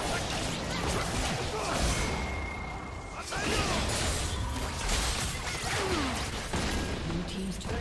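Magic spells crackle and whoosh in a fast fantasy battle.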